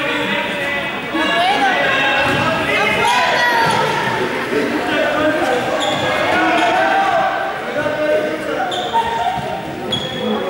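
A group of young people shout and chatter in a large echoing hall.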